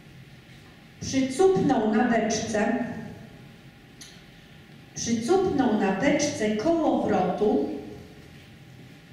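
A young woman reads out through a microphone in a large echoing hall.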